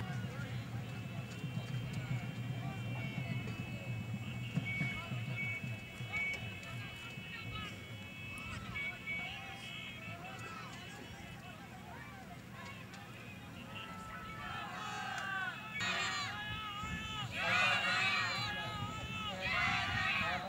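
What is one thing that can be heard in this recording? A crowd of men shouts and chants outdoors, some distance away.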